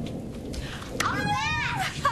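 A young girl shouts in a high voice.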